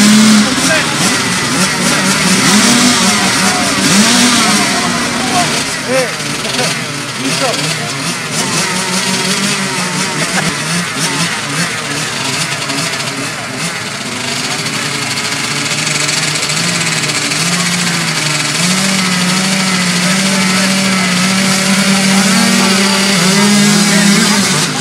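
Several small motorbike engines idle and rev loudly outdoors.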